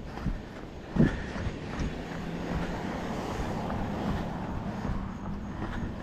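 A car drives past on the road nearby.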